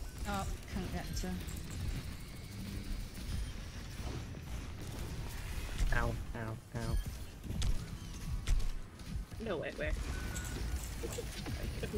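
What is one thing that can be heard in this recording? Gunfire and blasts sound from a video game.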